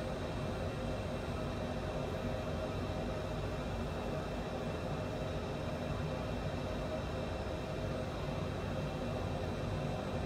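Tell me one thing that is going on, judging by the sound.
Jet engines roar in a steady, deep drone.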